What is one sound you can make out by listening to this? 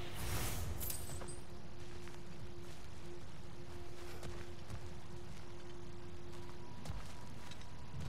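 Footsteps crunch on rough ground.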